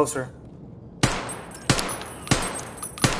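A rifle fires several single shots that echo.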